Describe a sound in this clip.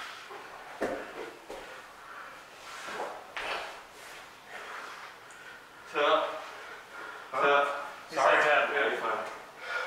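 Bodies thump and shuffle on a padded mat.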